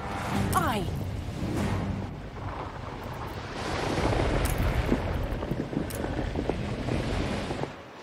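Water splashes and washes around sailing ships.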